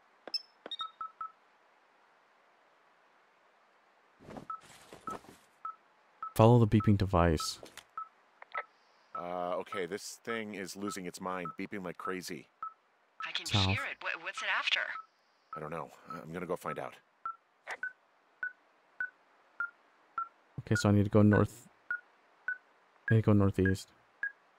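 An electronic device beeps steadily, the beeps coming faster over time.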